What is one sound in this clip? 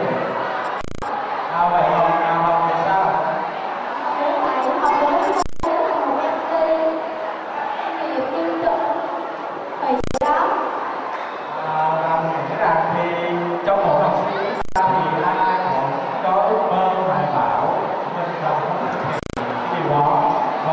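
A young woman speaks into a microphone over loudspeakers.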